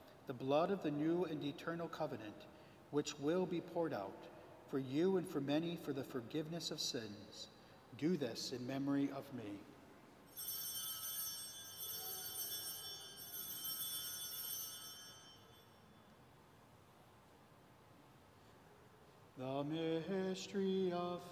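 A man chants in a slow sung voice through a microphone, echoing in a large hall.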